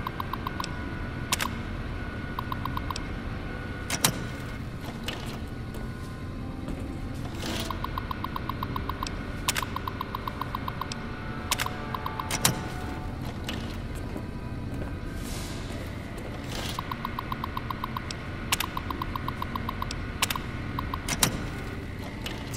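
A computer terminal beeps in rapid runs as text prints out.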